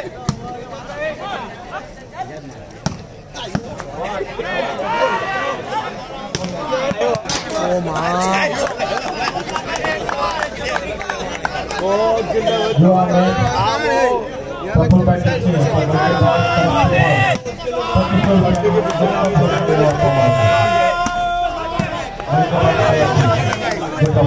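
Men shout and talk loudly outdoors.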